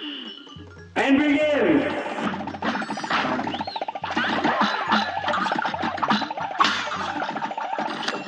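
Rapid cartoon gunshots pop and crackle in quick bursts.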